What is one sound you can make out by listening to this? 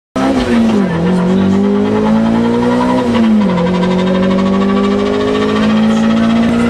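A rally car engine roars loudly from inside the car, dropping in pitch with each gear change and climbing again.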